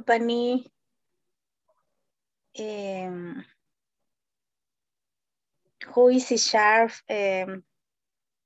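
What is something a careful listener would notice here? A woman speaks in short bursts close to a microphone, with pauses between.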